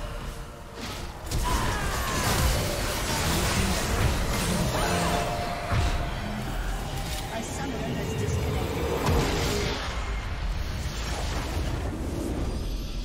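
Game spell effects crash and whoosh in a busy fight.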